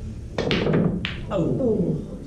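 Snooker balls clack together on the table.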